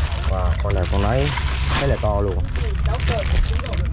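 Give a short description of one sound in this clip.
A plastic bag rustles and crinkles as it is handled.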